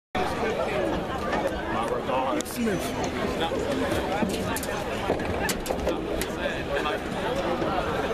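A crowd of young people chatters and calls out outdoors nearby.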